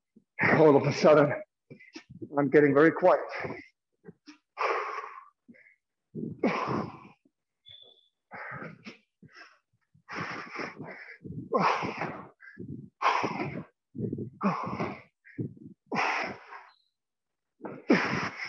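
A man talks steadily in short bursts, close by in an echoing room.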